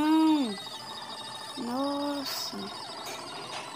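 A game creature gives a short electronic cry that drops in pitch.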